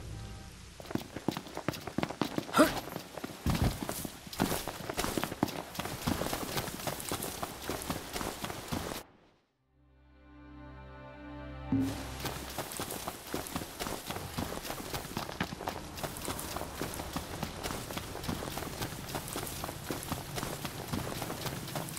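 Quick footsteps run over wet ground and through grass.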